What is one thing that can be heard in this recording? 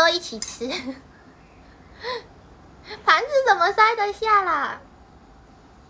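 A young woman speaks playfully close to a microphone.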